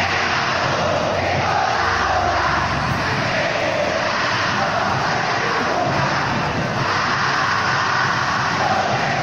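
A huge stadium crowd chants and sings loudly in unison, echoing across the open stands.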